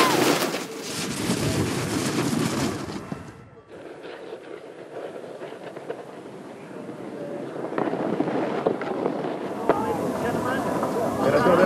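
Snowboards scrape and hiss over snow.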